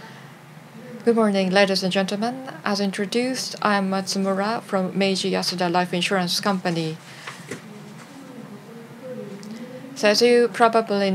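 A woman speaks calmly through a microphone.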